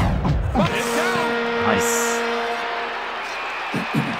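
A goal horn blares loudly.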